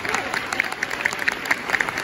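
A woman claps along to the beat.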